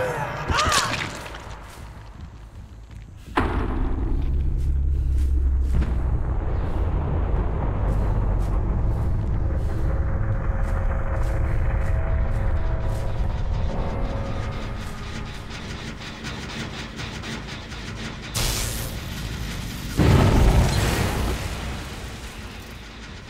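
Footsteps run and rustle through tall grass.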